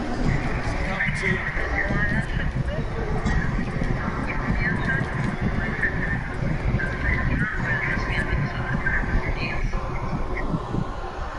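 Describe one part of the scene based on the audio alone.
A large crowd roars and chants in a stadium.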